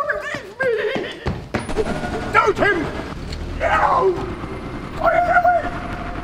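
A woman talks excitedly close by.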